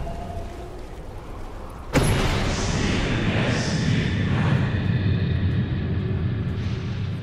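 Fantasy battle sound effects clash and rumble.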